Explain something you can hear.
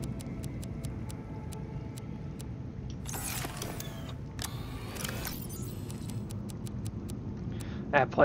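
Soft interface clicks tick quickly one after another.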